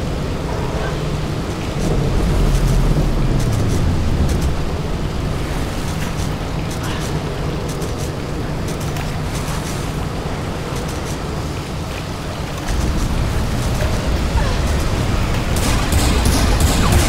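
Water rushes and churns loudly.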